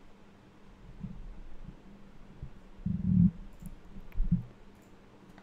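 A man speaks briefly and quietly into a close microphone.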